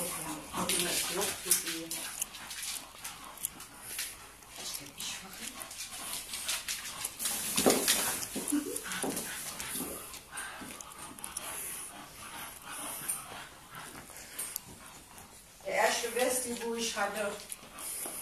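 Small dogs scamper and scuffle, claws clicking on a hard floor.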